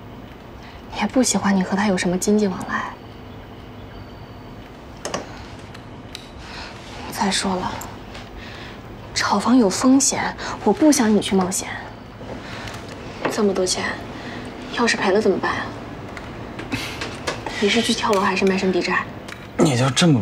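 A young woman speaks in an upset, pleading voice.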